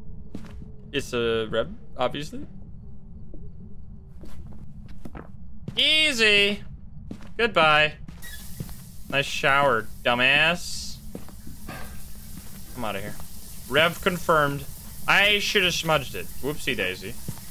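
A young man talks with animation into a microphone, heard close up.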